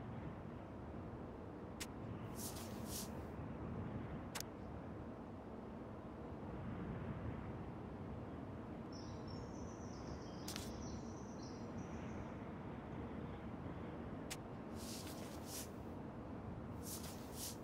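Sheets of paper rustle as pages are turned.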